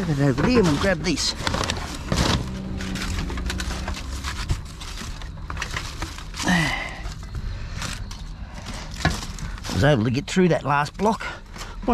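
Foil wrappers crackle as hands move them.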